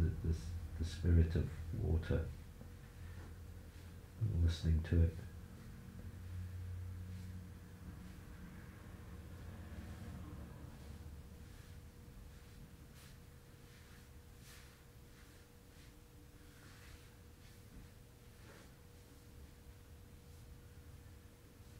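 Clothing and a padded mat rustle as one person presses and stretches another.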